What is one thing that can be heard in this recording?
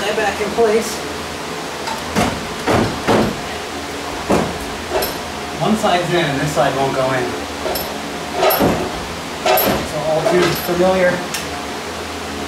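Metal tools clink and knock against engine parts.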